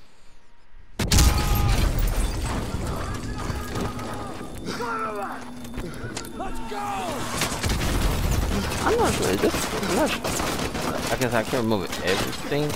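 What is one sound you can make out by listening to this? Gunfire and explosions rattle nearby in a battle.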